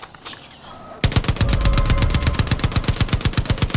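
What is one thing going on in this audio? A heavy machine gun fires in rapid bursts, loud and close.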